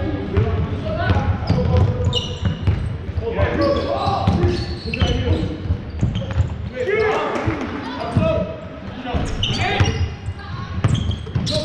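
Young players shout and call out to each other across an echoing hall.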